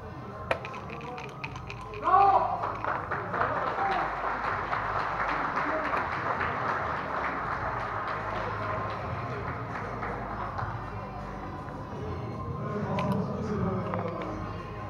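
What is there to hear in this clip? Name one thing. Game pieces click and clack against a wooden board.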